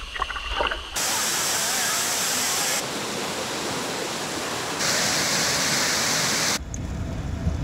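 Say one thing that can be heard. A waterfall rushes and splashes close by.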